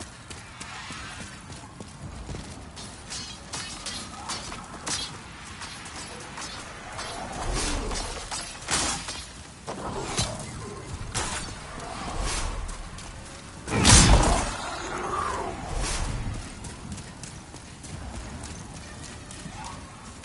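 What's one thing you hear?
Armored footsteps clank on stone in a hollow, echoing passage.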